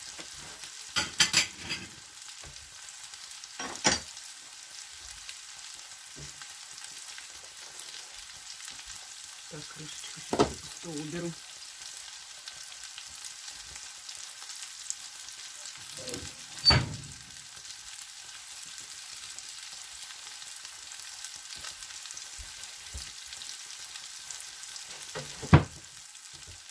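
Dishes and kitchen items clatter and knock.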